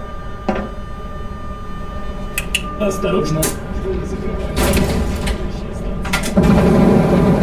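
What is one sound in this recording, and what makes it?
Switches in a train cab click sharply a few times.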